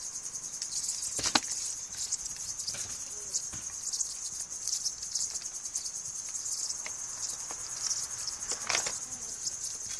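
Kittens scamper and scuffle on a carpet.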